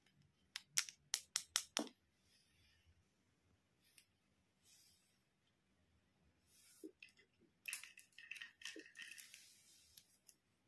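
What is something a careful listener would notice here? Plastic toy pieces click and clack together.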